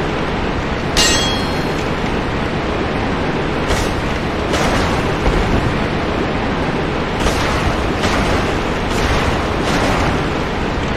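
Metal weapons clang and thud in a close fight.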